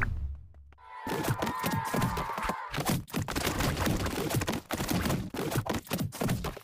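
Rapid soft pops and clicks sound as two crowds of small figures collide.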